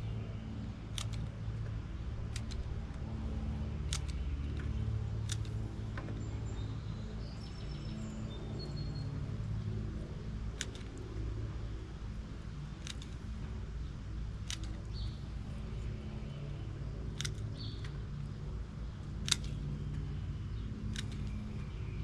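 Pruning shears snip sharply at branches, every second or two.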